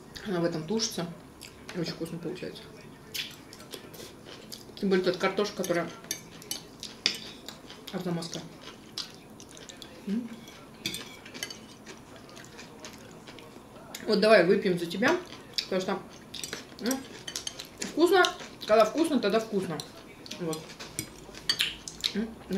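Forks clink against plates and bowls.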